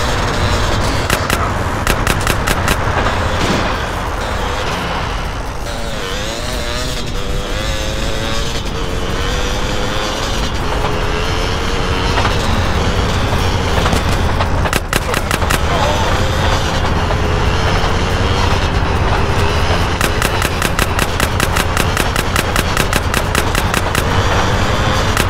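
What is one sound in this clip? A motorbike engine drones steadily, rising and falling in pitch.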